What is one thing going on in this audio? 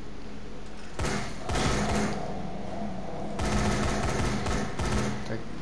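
A nail gun fires in short bursts.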